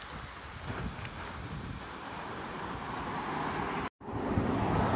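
A car drives along a road toward the listener.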